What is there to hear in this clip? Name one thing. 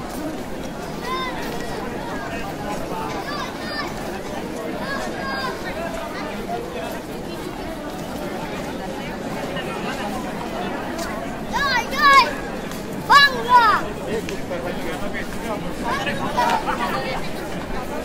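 Men in a crowd shout loudly now and then.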